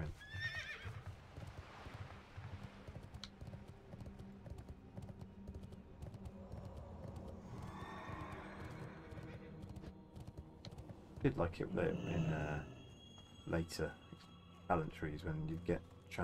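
Hooves clop steadily on wood and stone.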